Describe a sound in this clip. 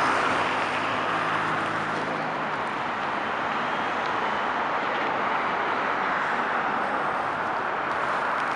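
A heavy truck engine rumbles by.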